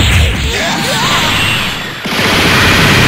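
Energy blasts fire in rapid bursts.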